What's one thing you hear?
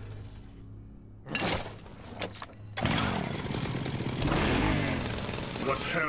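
A chainsaw runs.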